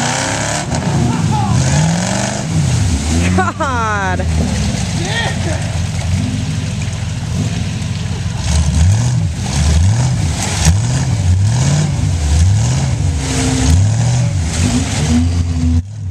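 An engine roars and revs up and down repeatedly.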